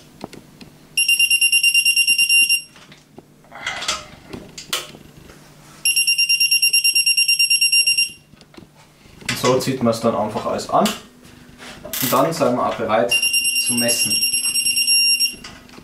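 A digital torque wrench beeps steadily.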